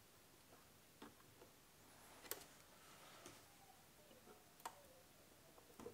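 Small clicks and taps sound close by as a component is handled.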